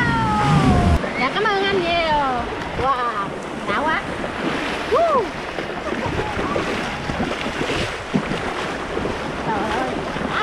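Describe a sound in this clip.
Waves wash and splash around the legs in shallow water.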